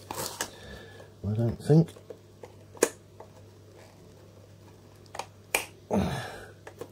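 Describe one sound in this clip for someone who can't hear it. A metal tool clicks and scrapes against batteries in a plastic case.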